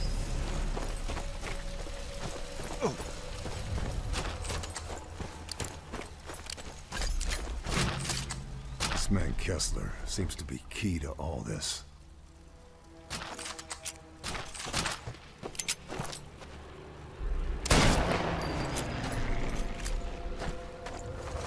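Footsteps crunch over dirt and wooden boards.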